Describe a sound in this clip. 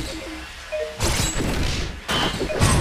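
Blows land with heavy thuds in a fight.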